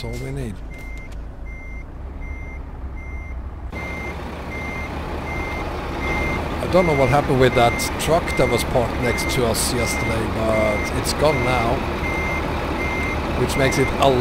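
A truck engine hums at a low, steady idle.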